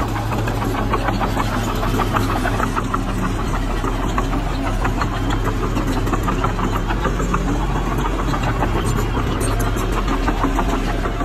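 A bulldozer engine rumbles steadily close by.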